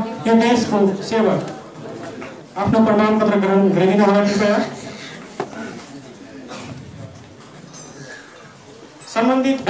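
A man speaks loudly over a loudspeaker in an echoing hall.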